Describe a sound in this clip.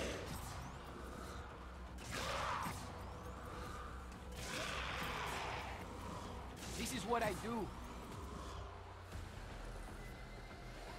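An energy weapon fires with bursts of crackling whooshes.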